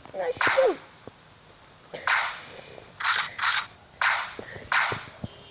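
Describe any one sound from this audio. Rifle shots ring out one after another.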